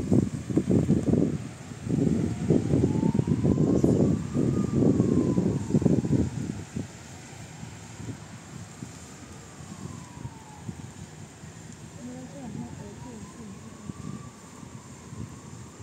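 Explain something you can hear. Light rain patters outdoors.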